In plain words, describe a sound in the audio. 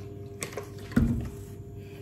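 A bottle thuds down on a counter.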